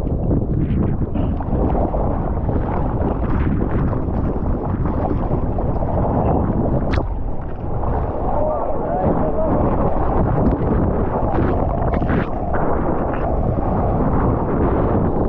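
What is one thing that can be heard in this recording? Water splashes and churns close by.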